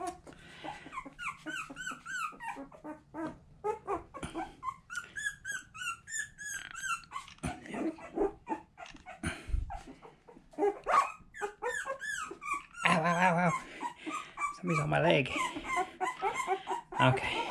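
A puppy whimpers and squeals in high, thin cries.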